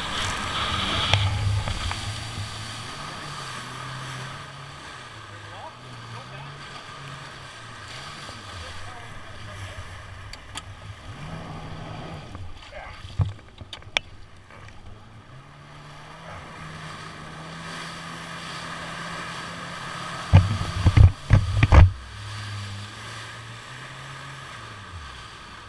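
A jet ski engine hums and revs steadily.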